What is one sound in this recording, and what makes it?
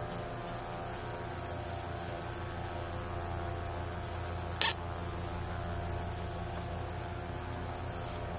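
Dry straw rustles softly as a man scatters it by hand.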